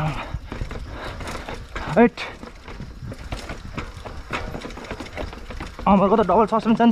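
Bicycle tyres thump and clatter down stone steps.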